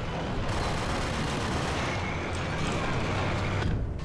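A metal door swings open.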